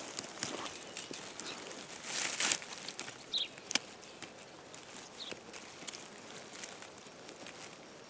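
Dry twigs and leaves crackle as a hand brushes through low plants.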